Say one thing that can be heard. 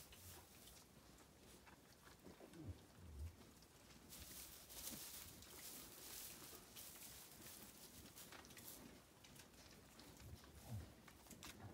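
Hooves shuffle and rustle through dry straw.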